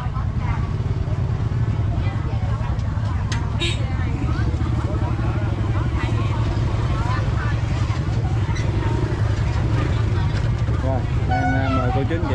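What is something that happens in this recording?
A motorbike engine idles with a steady low hum.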